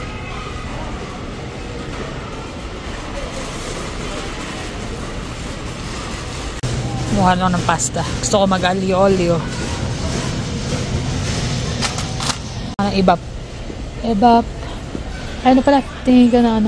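Shopping cart wheels rattle softly across a hard floor.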